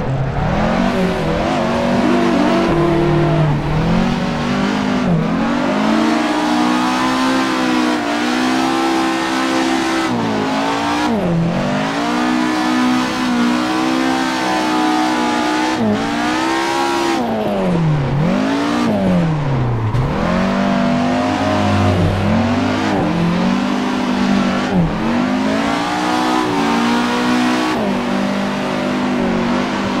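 A car engine revs hard, rising and falling as the gears shift.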